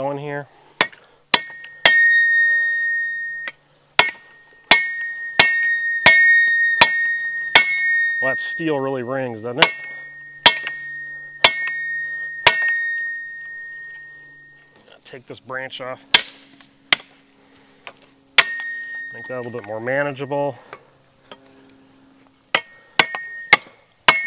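A hatchet chops into a log with sharp, ringing knocks.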